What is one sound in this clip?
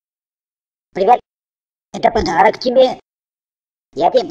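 A man speaks in a cartoonish, animated voice.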